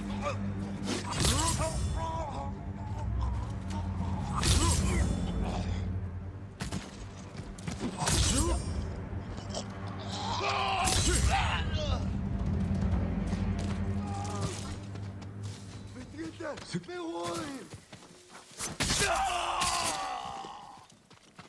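Swords clash and ring sharply again and again.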